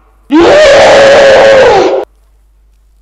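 A young woman screams loudly into a close microphone.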